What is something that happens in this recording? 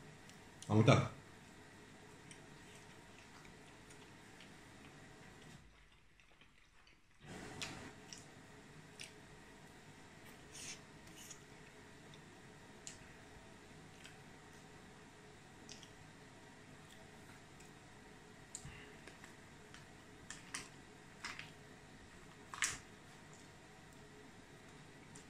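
A man bites into and chews food close by.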